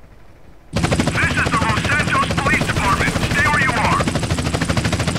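A man's voice calls out through a loudspeaker.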